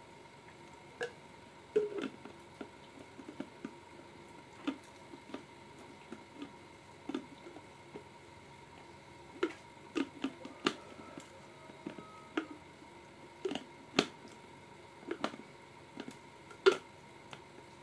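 A young woman makes sharp clicking and smacking sounds with her mouth close to a microphone.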